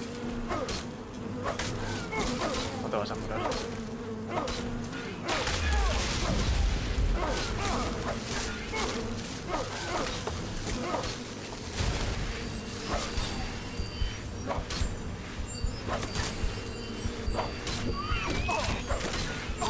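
Magic blasts crackle and boom in a game.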